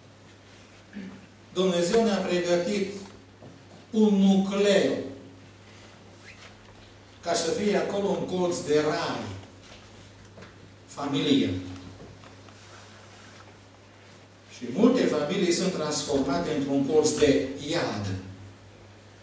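An elderly man speaks in bursts through a microphone, with pauses, in an echoing hall.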